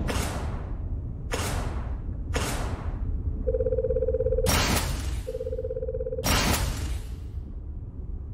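Soft whooshing sweeps sound as game menu items change.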